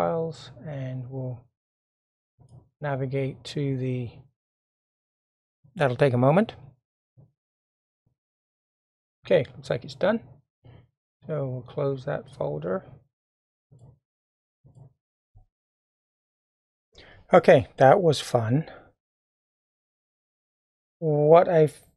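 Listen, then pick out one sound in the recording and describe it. An older man talks calmly and closely into a microphone, in short phrases with pauses.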